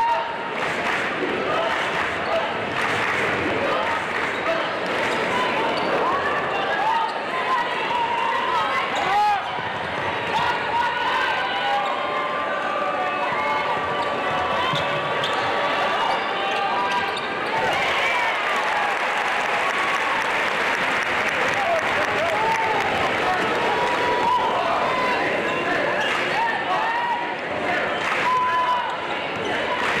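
A large crowd cheers and chatters in a big echoing arena.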